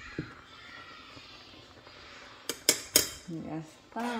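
A fork clinks against a metal pot.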